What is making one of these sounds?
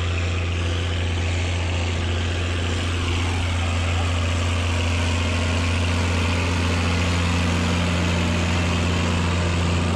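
A seed drill rattles over rough soil behind a tractor.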